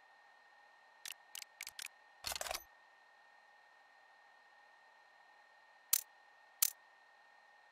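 Short menu clicks sound a few times.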